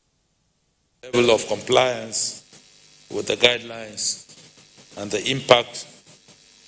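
A man speaks calmly into microphones.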